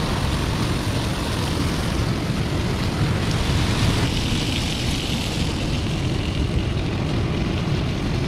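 Bacon sizzles in a pan.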